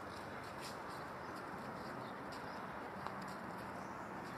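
Footsteps scuff softly on a pavement outdoors.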